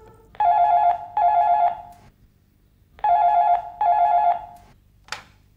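A telephone rings loudly in short double bursts.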